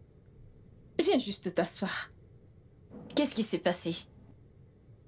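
A young woman cries and speaks in a trembling voice.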